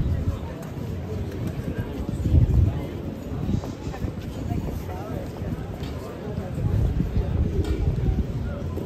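A crowd of people chatters in an open street.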